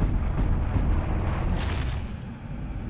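An electric charge crackles and zaps.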